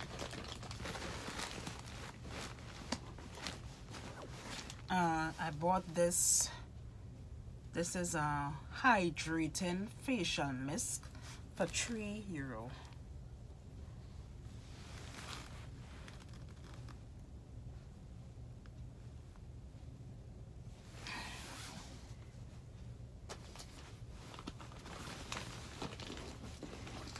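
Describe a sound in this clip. A bag's contents rustle as hands rummage through them.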